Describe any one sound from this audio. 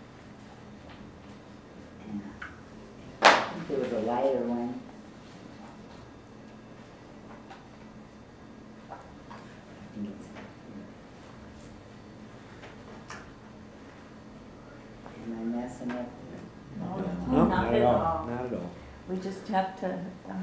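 Paper rustles as photographs are handled.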